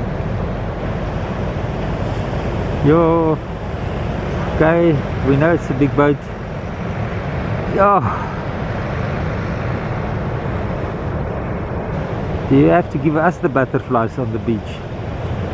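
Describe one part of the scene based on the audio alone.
Waves crash and roll steadily onto the shore.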